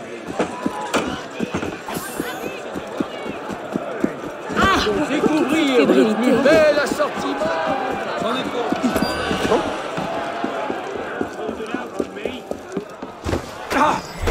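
Footsteps run quickly over cobblestones.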